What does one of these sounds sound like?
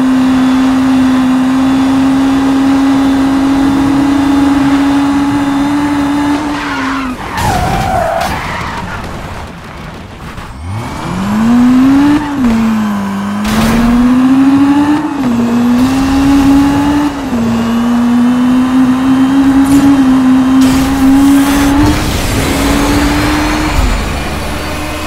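A sports car engine roars at high speed and shifts gears.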